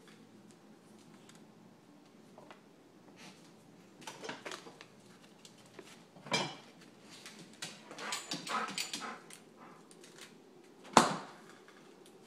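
A dog's claws click on a hard floor.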